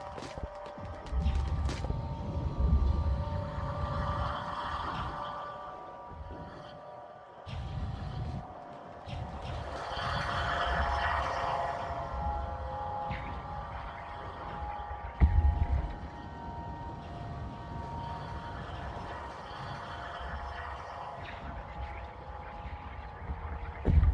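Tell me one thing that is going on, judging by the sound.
A machine hums and rumbles deep underwater.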